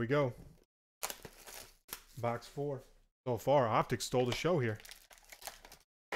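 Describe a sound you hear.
A foil wrapper crinkles and tears as a card pack is opened.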